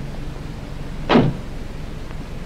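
A car door slams shut.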